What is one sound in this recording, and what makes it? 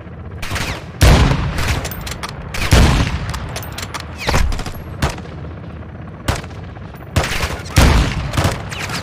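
A rifle fires loud shots that echo away outdoors.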